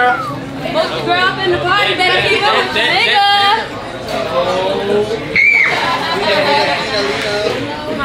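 Several young women and men talk and laugh loudly over each other nearby.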